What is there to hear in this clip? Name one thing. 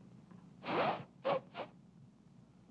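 A woman blows a whistle in short, sharp blasts.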